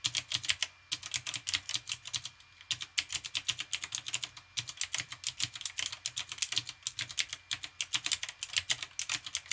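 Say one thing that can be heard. Fingers type fast on a mechanical keyboard with clicky blue switches.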